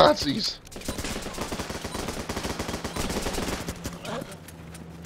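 Rapid gunfire crackles and pops in quick bursts.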